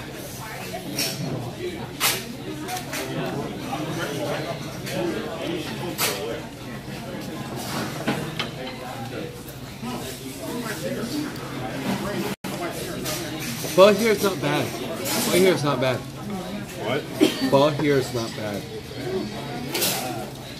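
Cutlery clinks against bowls.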